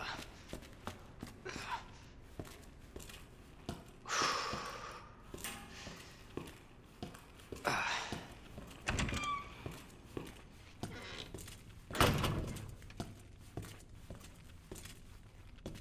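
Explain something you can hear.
Footsteps tap steadily on a hard floor in an echoing space.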